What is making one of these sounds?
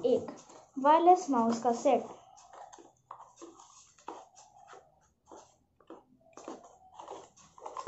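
Cardboard packaging rustles in hands.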